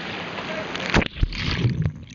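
Water bubbles and churns underwater.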